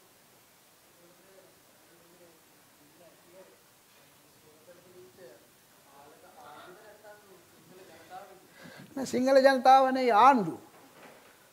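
An elderly man speaks into a microphone to an audience, softly at first and then loudly and with animation.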